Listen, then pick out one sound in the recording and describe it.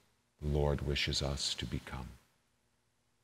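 A man speaks calmly and clearly into a small microphone, in a room with a slight echo.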